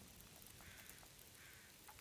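A campfire crackles.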